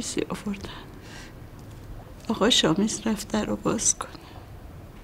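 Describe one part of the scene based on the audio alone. An elderly woman speaks quietly and sadly nearby.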